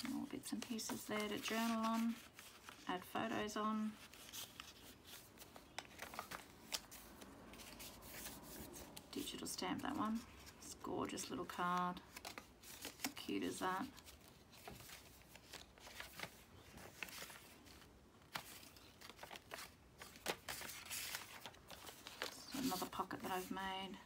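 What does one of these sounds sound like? Paper rustles and crinkles as hands handle cards.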